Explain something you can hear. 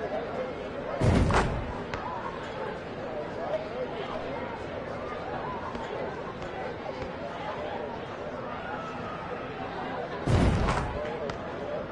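A basketball drops through a hoop with a heavy thud.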